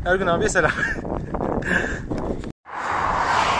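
A young man laughs close by.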